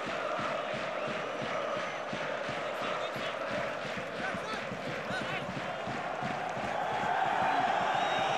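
A large stadium crowd chants and cheers loudly.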